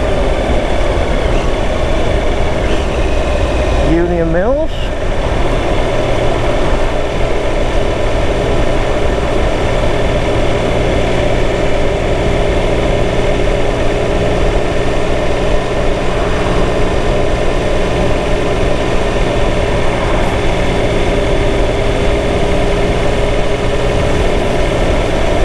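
Tyres roar on asphalt.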